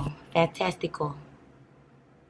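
A young woman speaks briefly and casually, close by.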